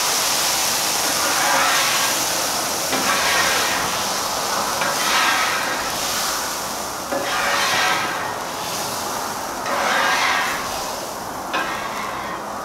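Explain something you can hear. A metal scraper scrapes across a griddle.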